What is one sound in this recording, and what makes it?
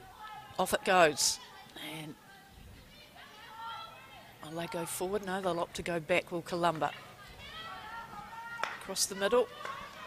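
A hockey stick strikes a ball with a sharp crack.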